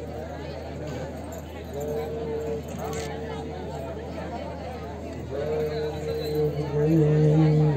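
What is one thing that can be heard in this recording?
A man speaks through a microphone over a loudspeaker.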